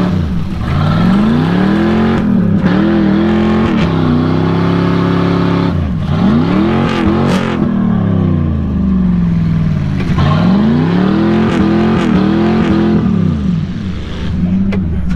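A truck engine roars and revs up and down repeatedly.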